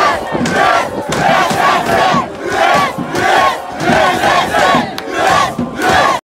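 A large crowd sings and chants loudly in rhythm outdoors.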